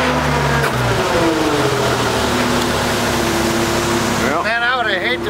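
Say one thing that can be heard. A concrete mixer truck's engine runs.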